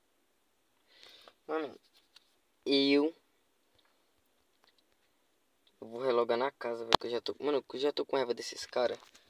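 A man speaks briefly into a microphone, close and loud.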